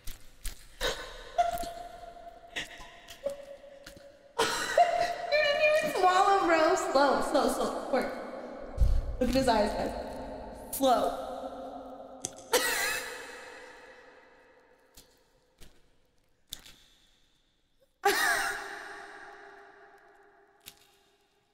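A young woman laughs and talks excitedly close to a microphone.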